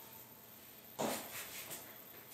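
Dumbbells knock with a dull thud.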